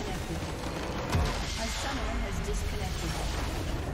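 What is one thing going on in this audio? A building explodes with a deep crash.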